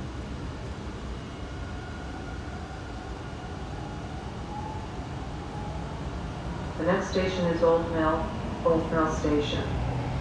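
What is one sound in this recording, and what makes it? A subway train pulls away, its motor whining as it rises in pitch.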